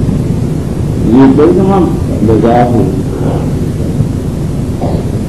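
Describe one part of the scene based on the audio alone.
An elderly man speaks steadily through a microphone in a large echoing hall.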